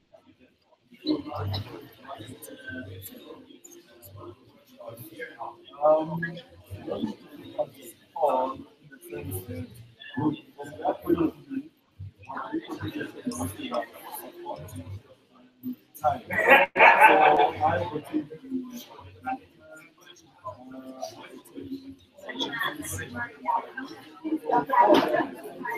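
Several men talk and murmur together in a room.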